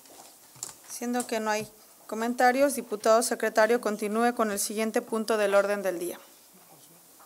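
A woman speaks into a nearby microphone in a calm, clear voice.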